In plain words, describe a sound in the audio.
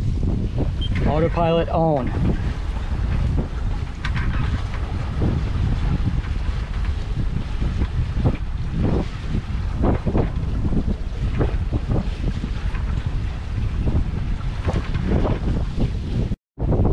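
Water rushes along the side of a moving boat.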